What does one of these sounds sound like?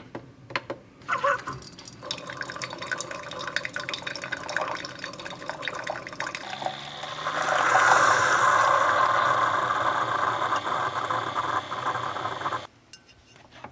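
A coffee machine hums and hisses as it brews.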